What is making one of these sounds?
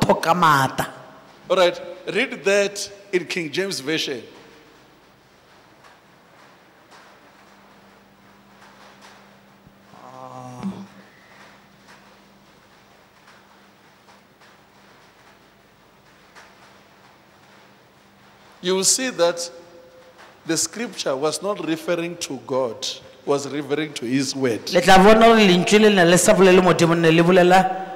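A woman speaks through a microphone into a large echoing hall.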